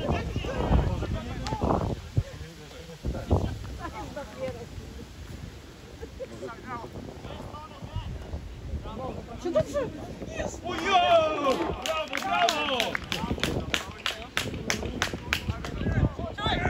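Young men shout to each other across a field outdoors.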